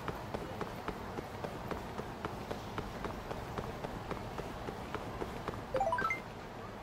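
Quick footsteps run on pavement.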